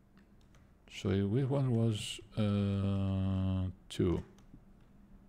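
A man speaks close to a microphone, with drawn-out, sing-song vowels.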